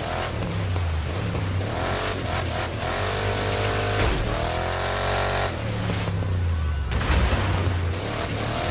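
An off-road engine revs loudly, rising and falling as gears change.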